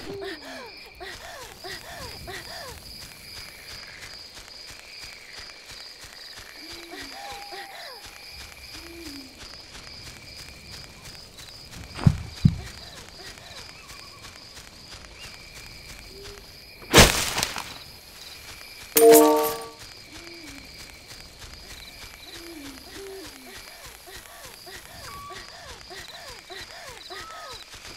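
Light footsteps patter steadily over grass.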